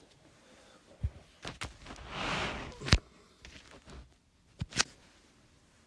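A hand brushes and knocks against a nearby microphone.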